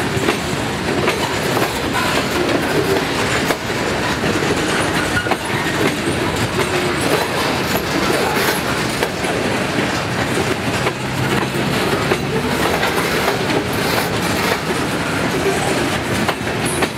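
A freight train rumbles past, close by and steady.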